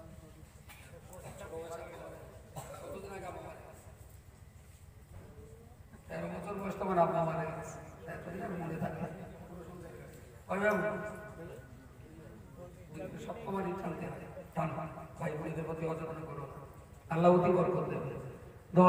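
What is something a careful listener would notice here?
An elderly man speaks with feeling into a microphone, heard through a loudspeaker.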